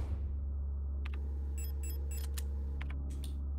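Short electronic beeps and clicks sound in quick succession.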